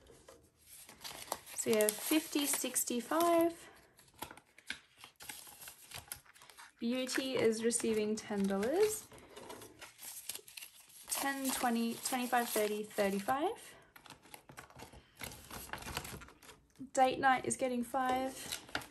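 Paper banknotes rustle and crinkle as they are handled.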